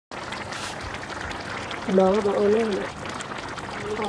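A stew bubbles and simmers in a pot.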